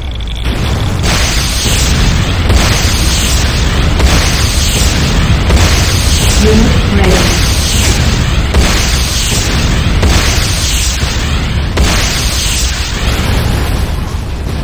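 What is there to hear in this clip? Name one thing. Explosions boom repeatedly.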